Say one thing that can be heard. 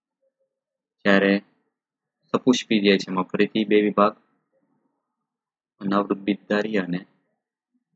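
A man speaks calmly and clearly into a close microphone, in short bursts with pauses.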